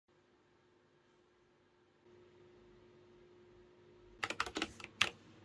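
A computer hums quietly and steadily.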